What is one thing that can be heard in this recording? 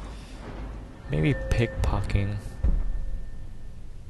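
A shimmering magical chime rings out.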